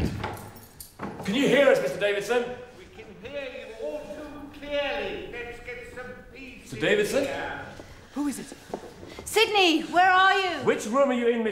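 A man speaks urgently and close by.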